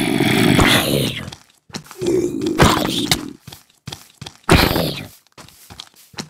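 Weapon blows land on a creature with dull thuds.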